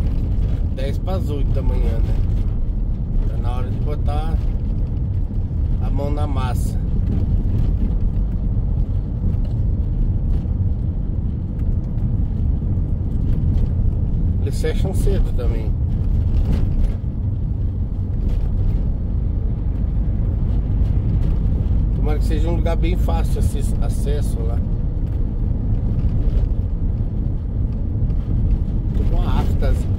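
An engine rumbles steadily inside a moving vehicle.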